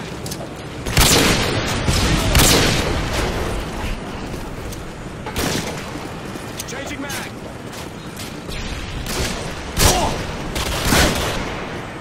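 Sniper rifle shots crack loudly in a video game.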